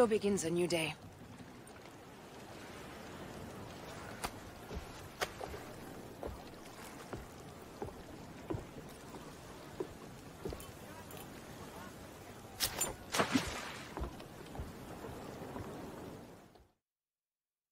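Wind blows softly over open water.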